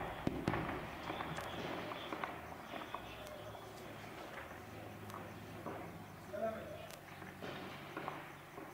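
Gunshots crack sharply at irregular intervals outdoors.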